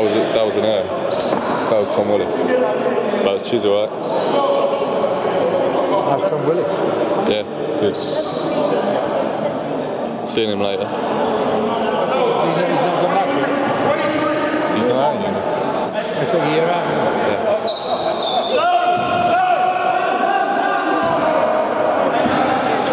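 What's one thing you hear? Young men call out and talk in a large echoing hall.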